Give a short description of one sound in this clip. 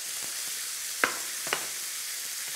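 A knife knocks on a cutting board.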